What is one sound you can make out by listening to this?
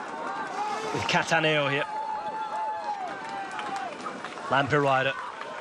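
Roadside spectators shout and cheer loudly close by.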